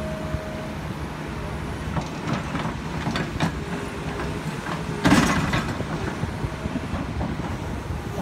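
An excavator bucket scrapes and digs into dirt.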